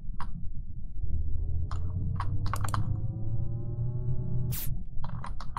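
A rising electronic tone plays as a fuel can fills in a game.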